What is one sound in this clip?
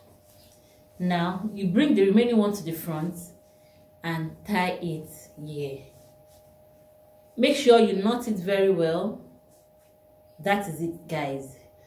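A woman speaks calmly close by.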